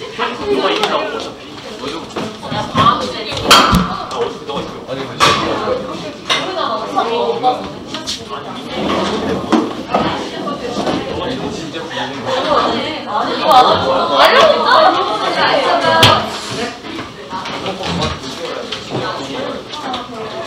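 Young people chatter nearby.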